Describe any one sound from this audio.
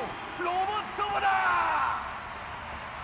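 A man announces loudly through a loudspeaker in a large hall.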